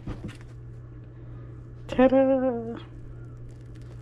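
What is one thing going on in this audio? The crust of a loaf crackles as hands pull the bread apart.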